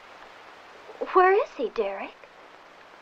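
A young woman speaks briefly nearby with animation.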